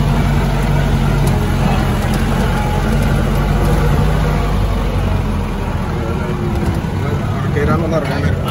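A vehicle engine hums low and steady while driving slowly.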